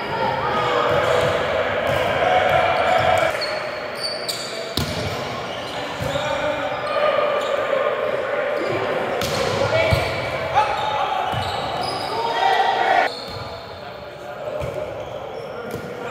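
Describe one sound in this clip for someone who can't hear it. Young men call out and talk in a large echoing gym.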